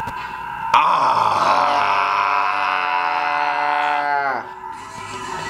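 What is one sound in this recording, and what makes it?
A man shouts with excitement close by.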